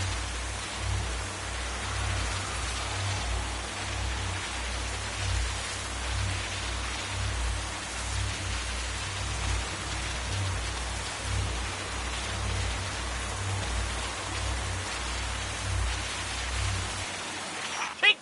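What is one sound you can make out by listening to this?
A deep hum throbs steadily.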